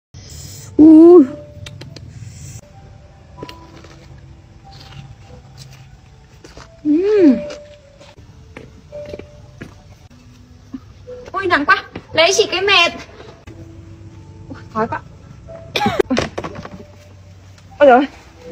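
A young woman speaks and exclaims with animation close by.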